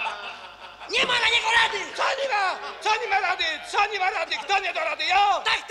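Men laugh and talk with animation.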